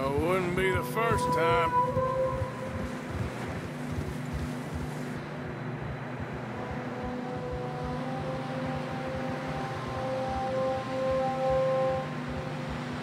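Wind blows steadily through a snowstorm.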